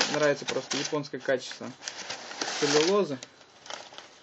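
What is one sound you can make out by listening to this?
Packing paper rustles and crinkles.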